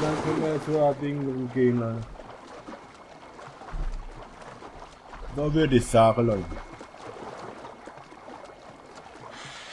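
Water splashes softly as a swimmer paddles through a lake.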